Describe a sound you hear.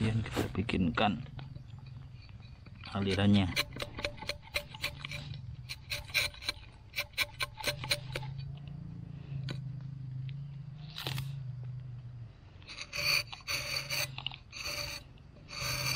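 A rubber-tapping knife scrapes as it shaves bark from a tree.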